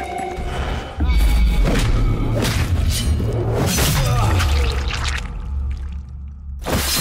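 Bodies thud and scuffle in a close struggle.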